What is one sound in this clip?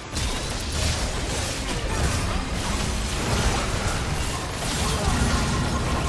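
Magic spells burst and crackle in a busy fight.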